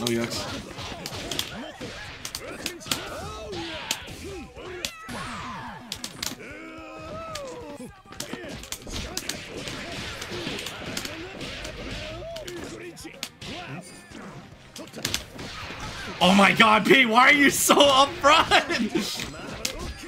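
Punches and kicks smack hard in a fast fighting game.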